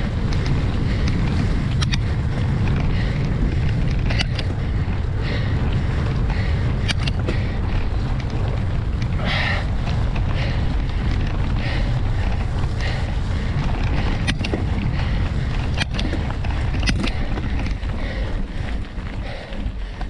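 Wind rumbles heavily against the microphone.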